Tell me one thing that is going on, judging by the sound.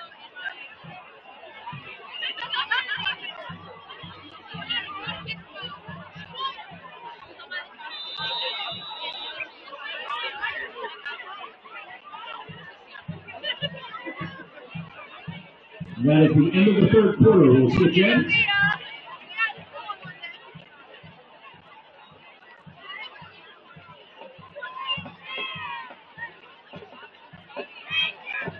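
A large crowd chatters and shouts in an open-air stadium.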